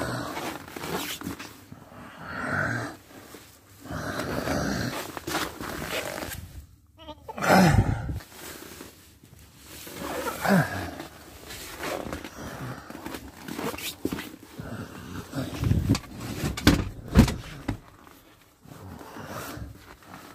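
Plastic trim rattles and knocks as it is handled.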